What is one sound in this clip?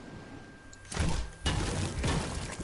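Footsteps thump on a wooden roof.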